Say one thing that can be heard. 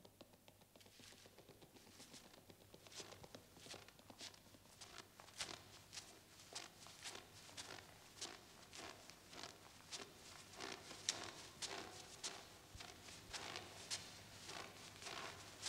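Footsteps crunch through deep snow.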